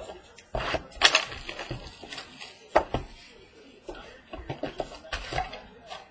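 Cardboard card boxes tap and knock on a hard table.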